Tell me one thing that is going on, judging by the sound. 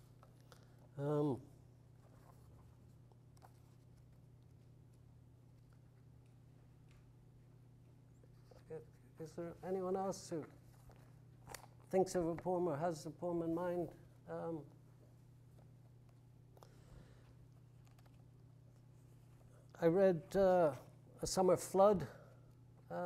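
An elderly man reads aloud slowly, with long pauses, in a room with a slight echo.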